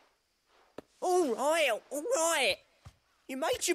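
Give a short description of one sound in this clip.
A man speaks loudly and with exasperation, close by.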